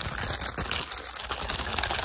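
Fabric rubs softly against a microphone.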